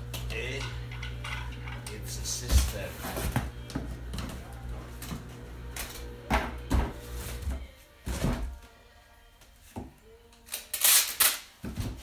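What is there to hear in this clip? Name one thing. Cardboard rustles and thumps as a box is handled.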